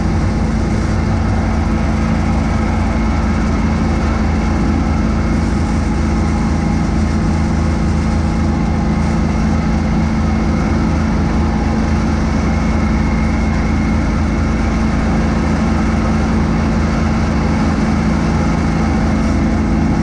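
A snow blower whirs and throws snow in a steady roar.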